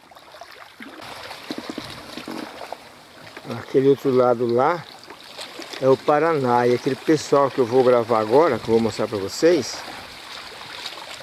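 Wind blows over choppy open water.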